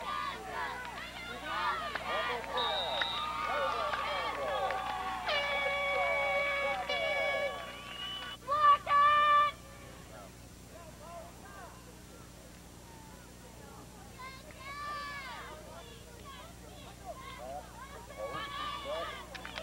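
A crowd of spectators talks and cheers outdoors.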